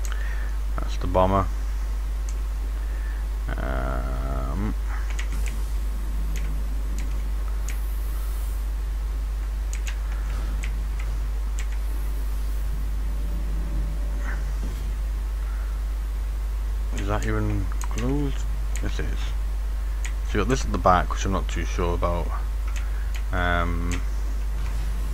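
A man talks casually into a headset microphone, close up.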